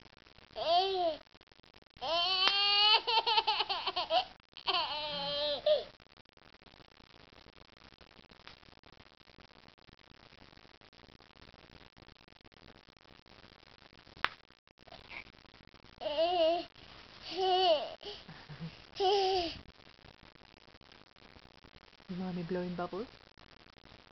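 A toddler squeals and babbles excitedly close by.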